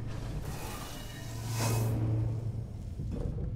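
A flamethrower roars in a short burst.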